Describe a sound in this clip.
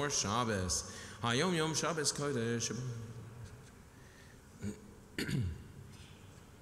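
A man chants through a microphone in an echoing hall.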